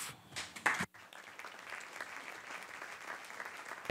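A room full of people applauds.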